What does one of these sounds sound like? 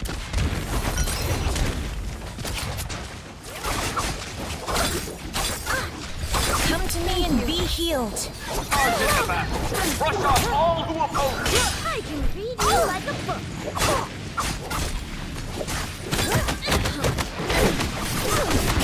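Magic blasts burst and whoosh.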